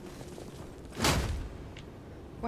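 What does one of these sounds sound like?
A heavy weapon strikes with a loud crash.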